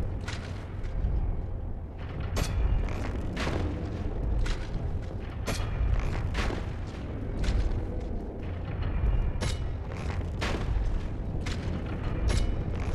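A heavy sword swings and strikes again and again with loud impacts.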